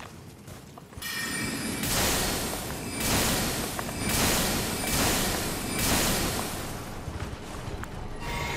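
A magic spell bursts with a loud whooshing crackle, again and again.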